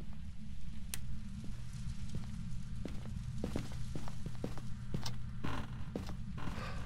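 Footsteps thud softly on a floor indoors.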